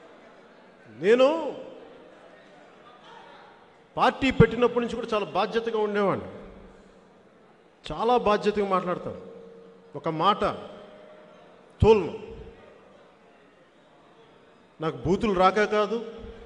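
A man speaks forcefully into a microphone, echoing through a loudspeaker.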